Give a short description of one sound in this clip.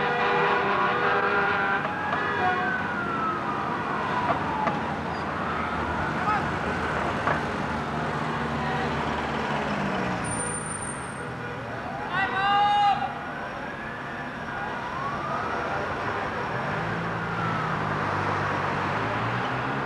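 Traffic rumbles past on a street.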